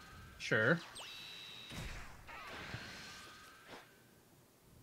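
A magical blast whooshes and bursts with a bright ringing shimmer.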